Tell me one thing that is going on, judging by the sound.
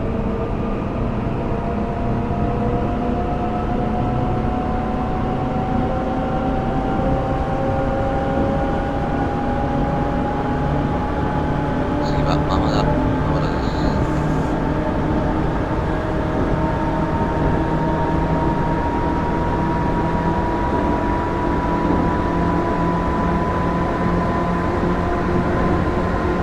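Train wheels rumble and clack over the rails.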